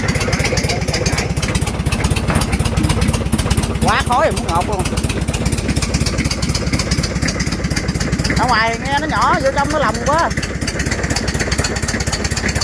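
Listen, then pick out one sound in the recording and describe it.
A diesel engine runs with a steady, rapid chugging throughout.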